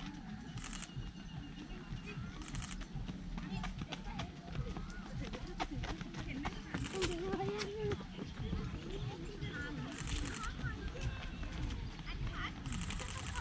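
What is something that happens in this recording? Runners' shoes patter on an asphalt road.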